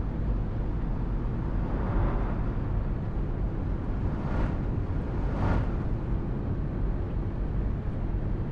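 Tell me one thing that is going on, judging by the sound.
Tyres hum on the road.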